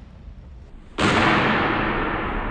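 Swords clash sharply in an echoing hall.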